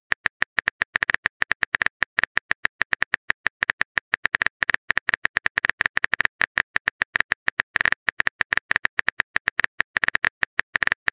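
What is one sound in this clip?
Short typing clicks tap out in a quick, uneven rhythm.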